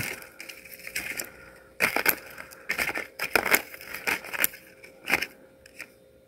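Paper rustles inside a plastic tub.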